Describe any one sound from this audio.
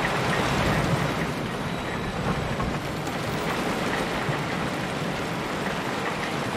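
A roller coaster car rumbles and rattles along its track.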